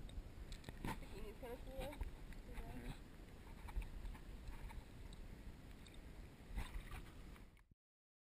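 Water laps and sloshes around a woman standing in a pool.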